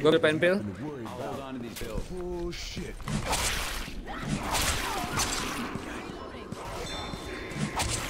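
A blade swishes through the air in quick slashes.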